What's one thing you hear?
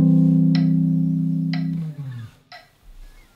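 An electric guitar rings out a sustained chord that slowly fades.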